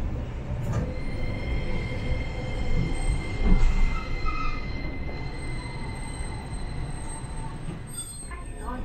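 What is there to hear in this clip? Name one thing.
A tram's electric motor whines with a steady high tone.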